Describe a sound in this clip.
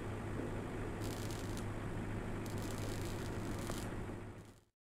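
Welding sparks crackle and hiss in short bursts.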